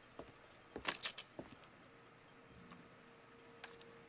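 A small card drops onto the floor.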